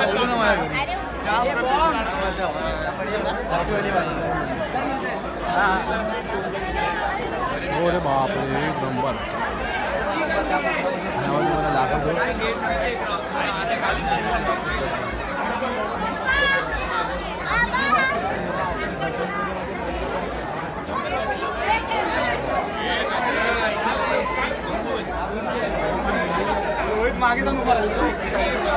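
A dense crowd of men and women chatters loudly all around, close by.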